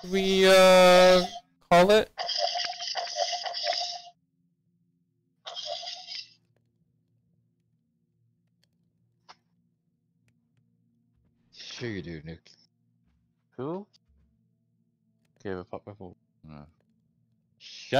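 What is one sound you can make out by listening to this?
A young man talks into a microphone in short bursts, with pauses between them.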